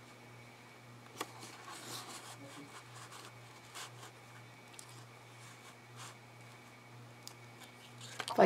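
Paper rustles and slides as hands handle cards.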